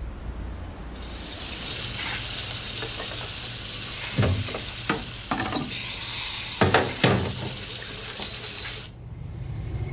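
Water runs steadily from a tap into a sink.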